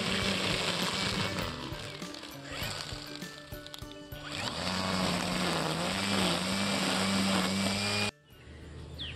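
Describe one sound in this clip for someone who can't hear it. A string trimmer whines loudly, cutting grass.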